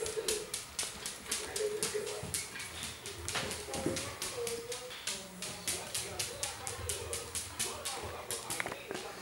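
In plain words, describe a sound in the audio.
A dog's claws click quickly on a hard floor.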